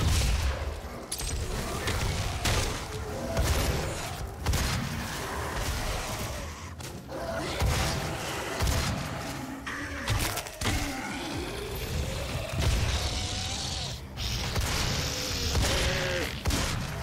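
Heavy gunfire booms again and again.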